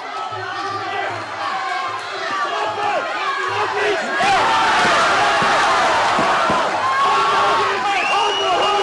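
Gloved punches thud against a body.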